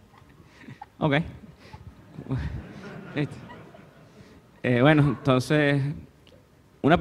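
A woman laughs into a microphone.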